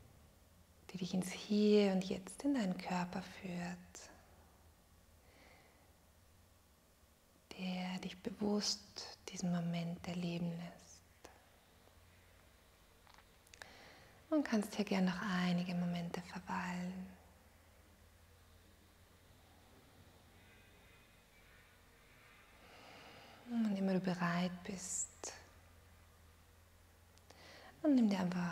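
A woman speaks calmly and slowly, in short phrases with pauses, close to a microphone.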